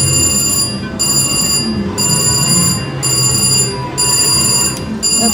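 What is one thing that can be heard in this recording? A slot machine plays a repeating electronic jingle.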